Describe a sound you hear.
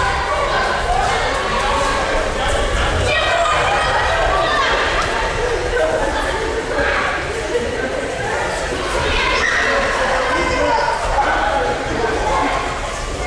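Many people chatter and call out in a large echoing hall.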